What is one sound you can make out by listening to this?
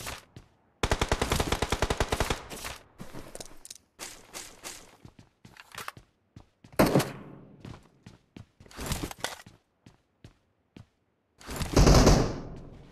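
Footsteps patter quickly over a hard floor.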